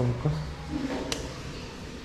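A switch clicks.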